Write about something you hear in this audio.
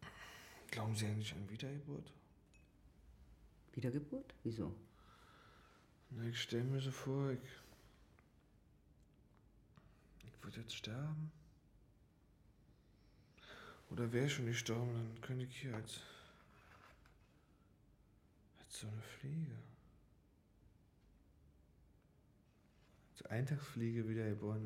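A man speaks softly and slowly, close by, in short phrases.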